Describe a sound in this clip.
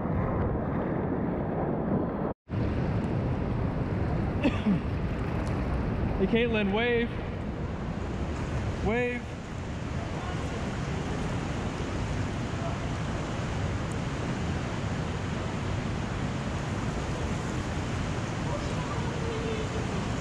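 Water rushes and splashes steadily, echoing between close rock walls.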